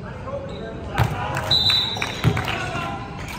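A basketball bounces off the rim with a thud.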